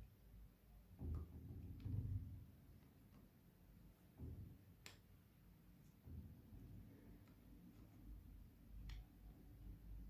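Plastic bone models knock and click softly as they are turned by hand.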